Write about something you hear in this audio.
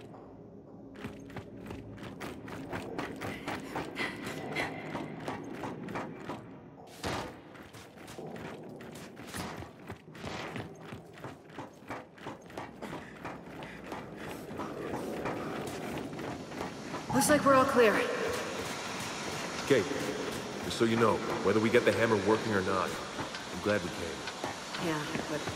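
Heavy boots clank in footsteps on a metal floor.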